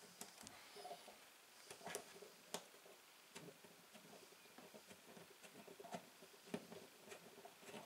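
Small plastic knobs click softly as they are turned by hand.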